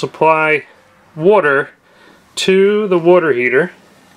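A plastic valve handle clicks as it is turned.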